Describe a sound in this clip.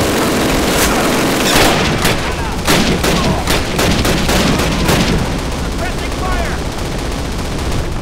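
Rifle shots crack and echo in quick bursts.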